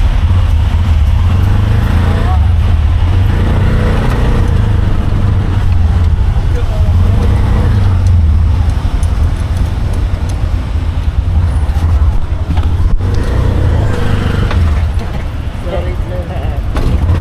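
Wind buffets loudly against an open vehicle.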